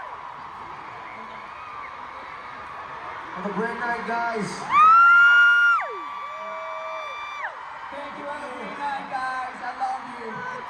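A large crowd cheers in a big echoing arena.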